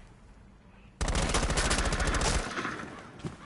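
A gun fires a rapid burst of shots at close range.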